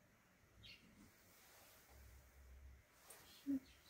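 Cloth rustles softly as a person shifts while kneeling.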